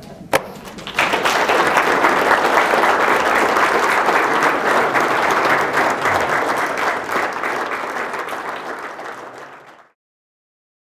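An audience applauds loudly and then fades away.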